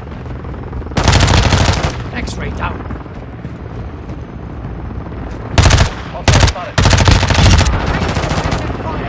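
An automatic rifle fires loud rapid bursts.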